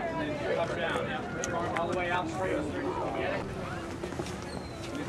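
A crowd of adults talks and chatters outdoors.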